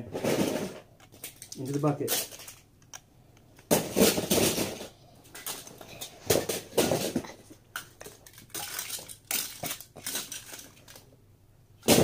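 Small plastic toys clatter and knock close by.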